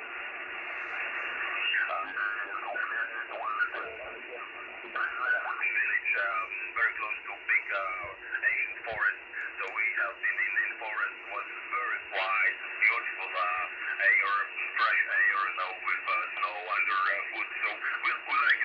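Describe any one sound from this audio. Radio static hisses steadily.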